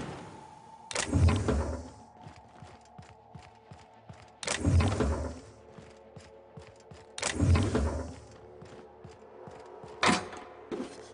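An old computer terminal buzzes and whooshes as it switches on and off.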